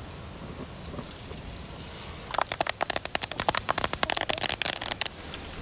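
Fish sizzles and crackles as it fries in hot oil.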